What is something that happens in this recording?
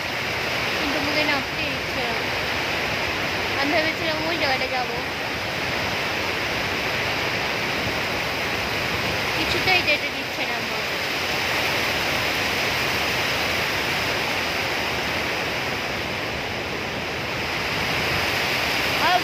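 A river rushes steadily over rocks outdoors.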